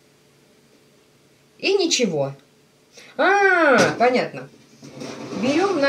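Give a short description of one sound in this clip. A metal oven rack slides out with a scrape.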